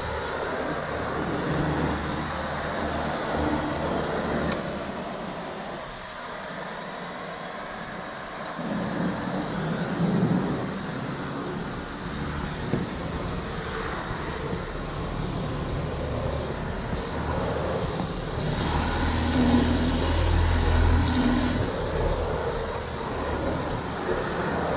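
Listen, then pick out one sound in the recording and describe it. A floor cleaning machine whirs and hisses steadily as it scrubs across tile.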